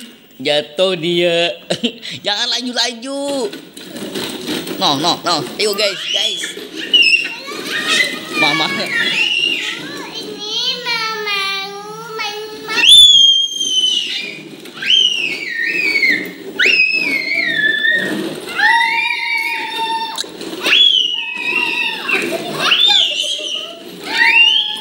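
A toddler boy shrieks and laughs nearby.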